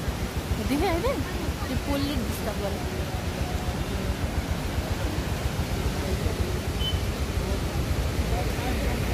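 Men talk excitedly nearby.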